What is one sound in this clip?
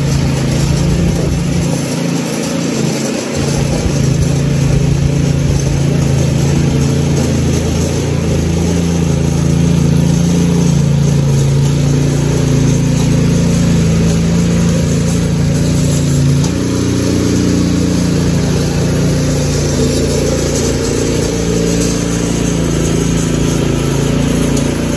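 A small petrol tiller engine runs and churns soil.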